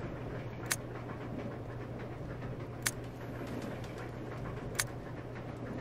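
A short sharp menu click sounds as each page turns.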